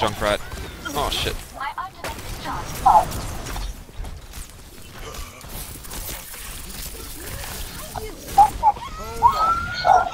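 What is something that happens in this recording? Rapid video game gunfire and blasts ring out.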